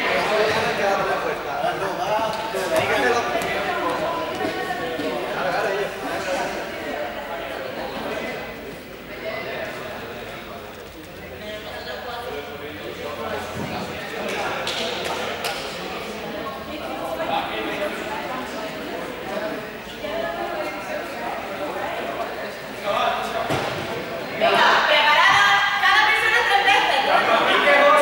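Young people chatter and call out in a large echoing hall.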